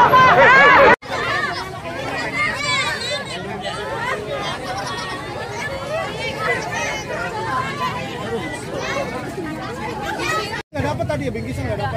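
A crowd of men, women and children chatters close by.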